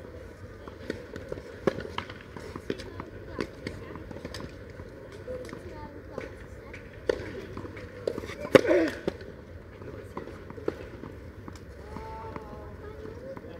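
A player bounces a tennis ball on a clay court.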